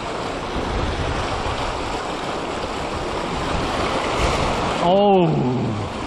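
A net splashes into the water.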